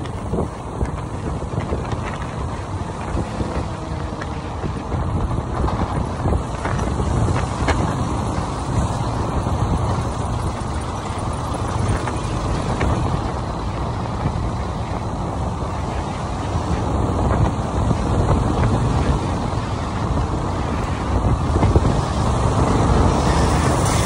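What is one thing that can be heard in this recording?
Wind rushes and buffets past the rider.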